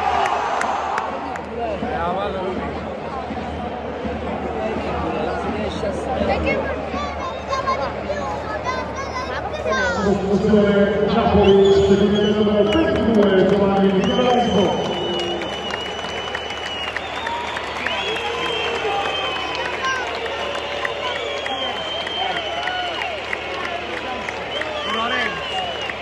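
A large crowd chants and sings together in a big open stadium.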